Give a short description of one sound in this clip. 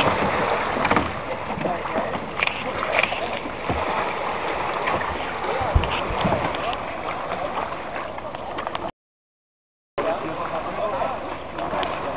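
Swimmers splash and churn through the water.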